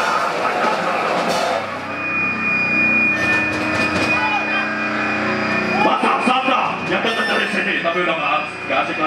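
A man shouts and sings loudly into a microphone.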